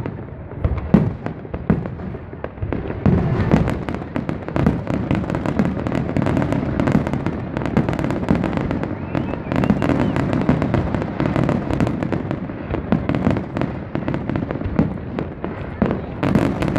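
Fireworks bang and crackle overhead in rapid bursts.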